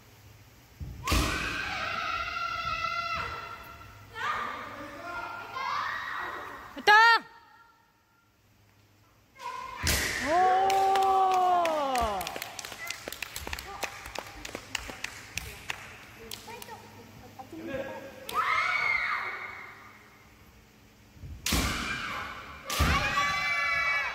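Young fencers shout loud, drawn-out cries that echo in a large hall.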